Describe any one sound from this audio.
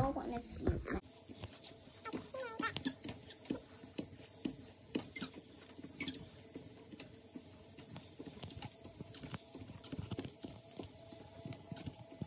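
A treadmill belt whirs steadily.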